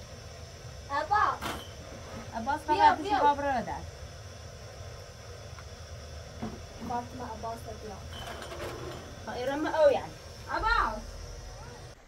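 A second young woman talks calmly nearby.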